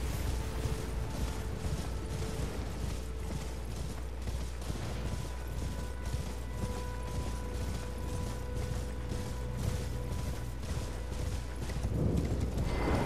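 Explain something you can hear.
A horse gallops with quick, steady hoofbeats.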